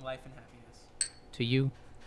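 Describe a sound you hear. A glass clinks on a wooden bar.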